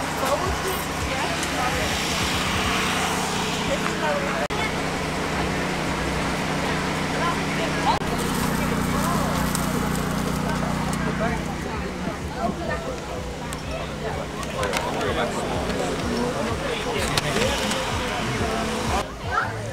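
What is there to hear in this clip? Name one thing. Men and women chatter outdoors nearby.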